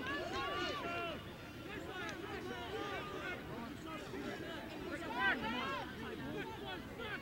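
Young boys shout and call out to each other across an open field.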